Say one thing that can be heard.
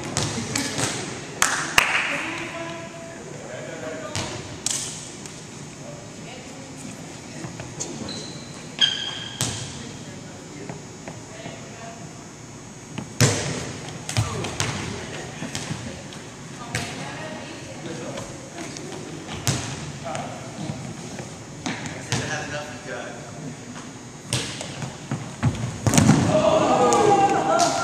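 Young men talk and call out in a large echoing gym.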